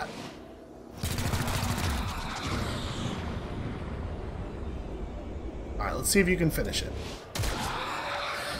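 Energy weapons fire with crackling, buzzing blasts.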